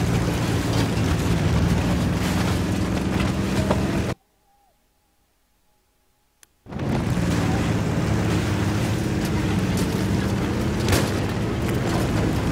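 A heavy tank engine rumbles steadily.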